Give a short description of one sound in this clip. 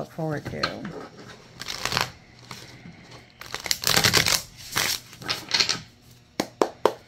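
Playing cards shuffle and riffle together.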